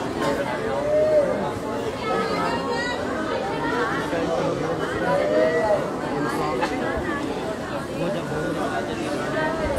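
A crowd of men and women murmur and talk outdoors.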